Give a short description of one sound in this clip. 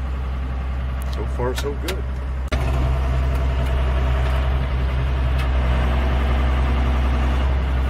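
A tractor's loader hydraulics whine as a hay bale is lifted.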